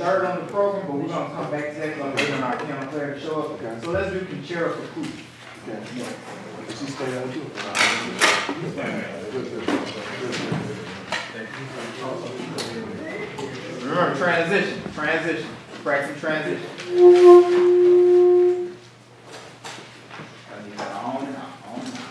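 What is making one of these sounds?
A jazz band plays in a large echoing room.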